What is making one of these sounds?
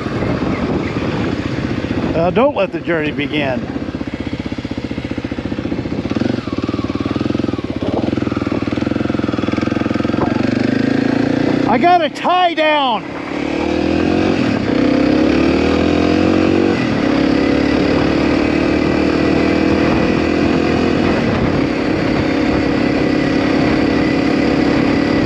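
A motorcycle engine drones steadily close by, rising and falling with the throttle.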